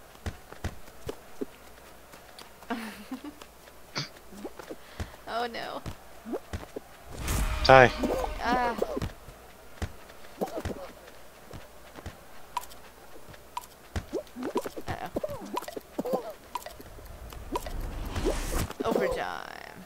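A large ball thuds as small figures bump into it.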